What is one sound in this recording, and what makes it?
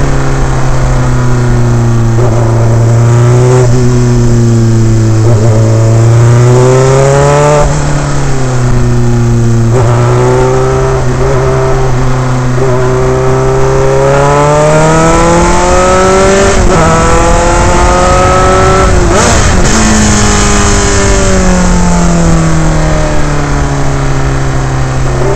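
A racing car engine roars loudly up close, rising and falling in pitch as it shifts gears.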